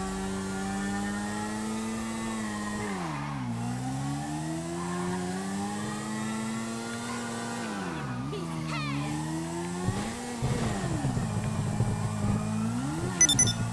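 A motorcycle engine hums and revs up and down.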